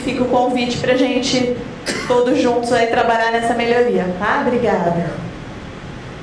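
A woman speaks into a microphone over loudspeakers in a large room.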